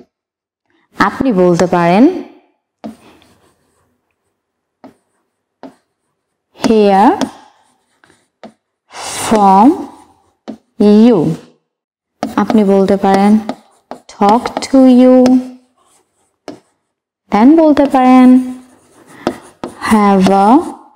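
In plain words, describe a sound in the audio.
A woman speaks calmly and clearly, as if teaching, in short phrases with pauses.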